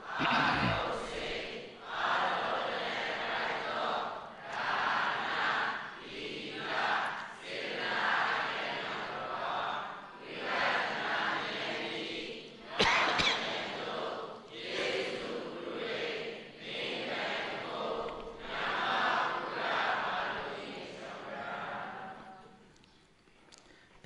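A large crowd chants together in unison, echoing in a large hall.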